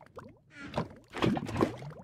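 Lava bubbles and pops.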